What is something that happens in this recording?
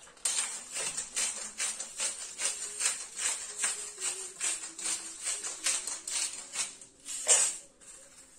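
A pepper mill grinds with quick, repeated crunches.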